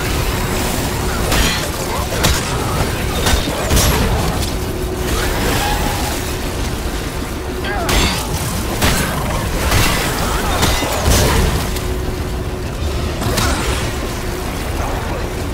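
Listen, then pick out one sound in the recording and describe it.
A weapon fires in sharp bursts.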